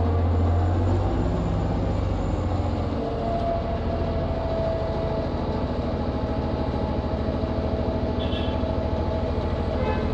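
A city bus engine rumbles deeply as the bus pulls away.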